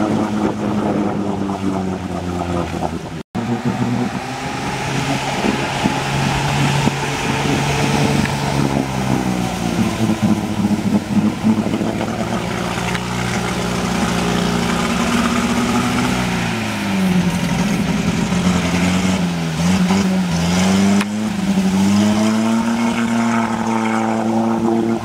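A UAZ-469 off-roader's engine labours under load, its revs rising and falling.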